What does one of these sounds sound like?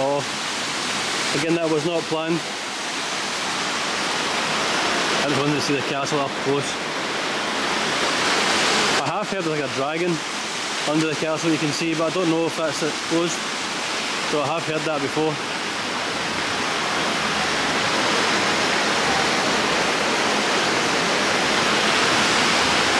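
A waterfall splashes and rushes steadily nearby, outdoors.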